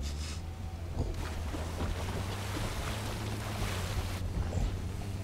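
A small dinosaur splashes and wades through shallow water.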